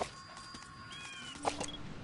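A person crawls through rustling grass.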